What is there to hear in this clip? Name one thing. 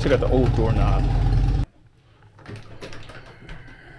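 A door handle turns and the door latch clicks open.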